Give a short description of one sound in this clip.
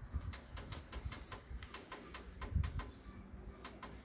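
A finger presses a button on a television with a soft click.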